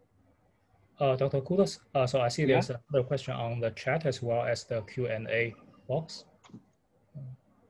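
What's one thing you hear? A young man talks calmly over an online call.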